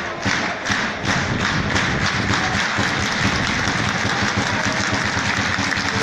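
A crowd of fans chants and cheers loudly.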